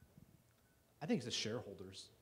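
A middle-aged man speaks up calmly from the audience.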